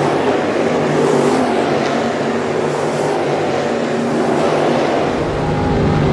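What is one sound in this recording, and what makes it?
Race car engines roar past in the distance.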